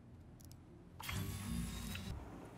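A vehicle's hatch closes with a mechanical whir and hum.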